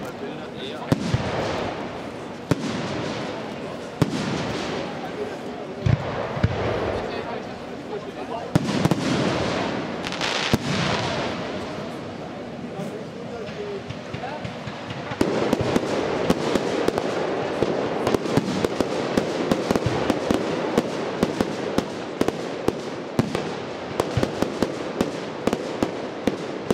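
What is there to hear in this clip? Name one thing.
Fireworks burst with loud booms that echo across the night.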